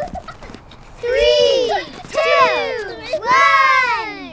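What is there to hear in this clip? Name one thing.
Young children shout and squeal excitedly close by.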